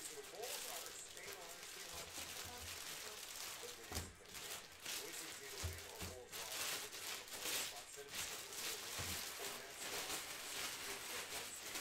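Plastic sleeves crinkle and rustle as they are handled.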